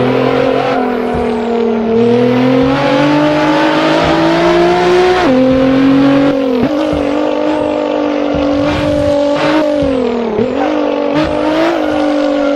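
A twin-turbo V6 racing car engine howls at high revs and shifts gears.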